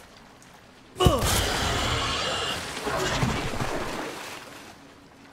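Water splashes loudly as something plunges in.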